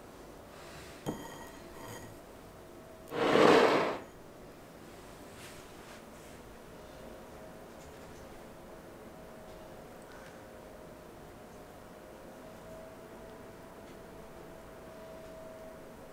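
A spatula stirs and scrapes softly in a glass bowl of liquid.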